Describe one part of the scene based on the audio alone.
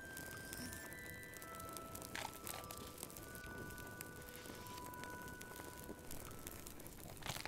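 A fire crackles and pops in a fireplace.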